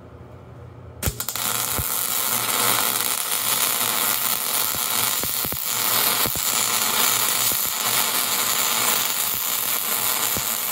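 A welding arc crackles and sizzles steadily, with sharp pops of spatter.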